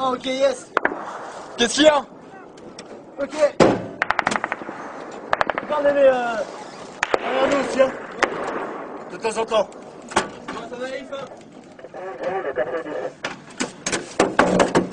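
Small-arms fire cracks.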